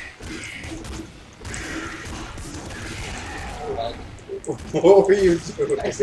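Video game guns fire in rapid bursts.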